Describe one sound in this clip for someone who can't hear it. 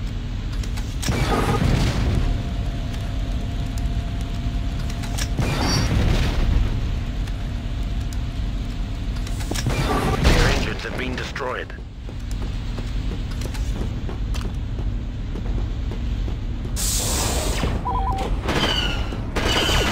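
A rifle fires in bursts of blaster shots.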